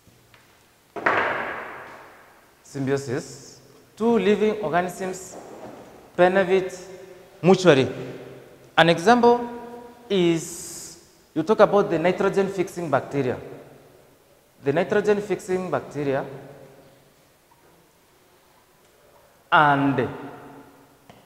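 A man speaks clearly and with animation, close by.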